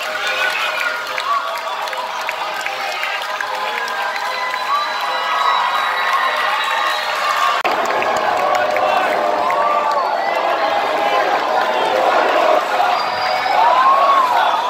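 A crowd of people chatters and calls out.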